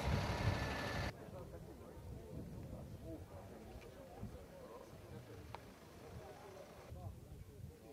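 A crowd of adult men and women murmurs and chats outdoors.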